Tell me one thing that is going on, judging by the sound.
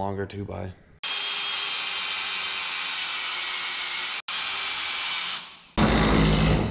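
A cordless drill whirs steadily.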